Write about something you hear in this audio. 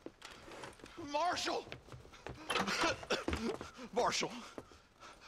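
An elderly man calls out repeatedly with urgency.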